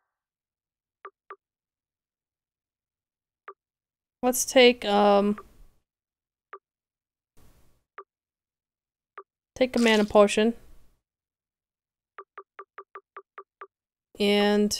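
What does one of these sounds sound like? Short soft blips sound as a game menu selection moves up and down.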